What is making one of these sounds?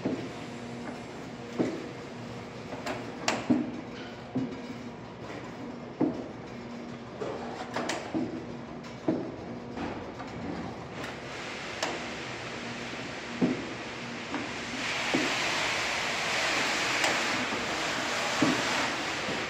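Plastic trays knock and clatter on a metal conveyor.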